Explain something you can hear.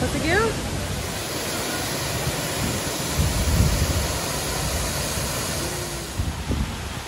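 A waterfall rushes and splashes nearby.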